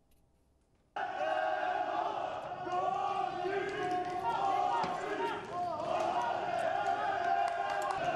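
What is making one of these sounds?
A crowd of men shouts in the street outdoors.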